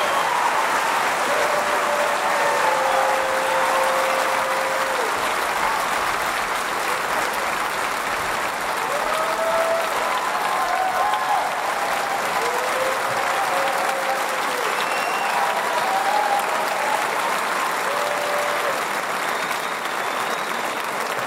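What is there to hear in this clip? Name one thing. A large audience applauds and cheers loudly in a big hall.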